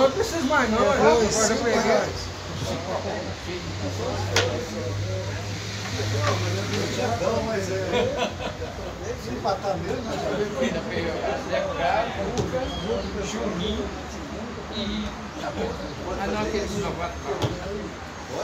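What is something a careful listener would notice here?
Game pieces click on a board.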